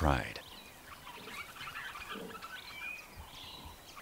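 A lion snarls.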